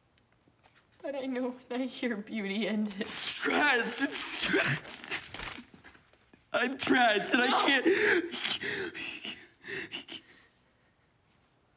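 A young man sobs and speaks brokenly close by.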